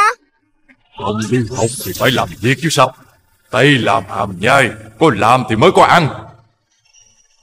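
A deep man's voice speaks slowly and menacingly.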